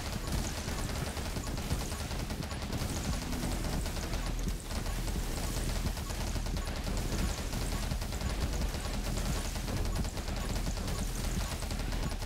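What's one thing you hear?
Electronic game music pulses with a deep bass.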